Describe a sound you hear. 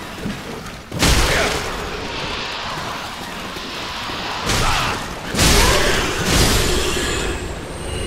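An axe slashes and strikes a large creature with heavy thuds.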